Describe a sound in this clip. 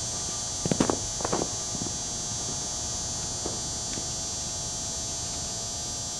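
Footsteps crunch on snow, moving away.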